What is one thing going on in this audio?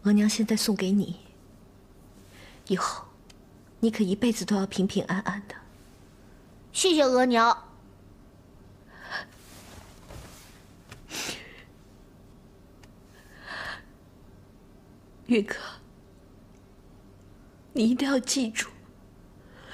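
A young woman speaks softly and tenderly, close by.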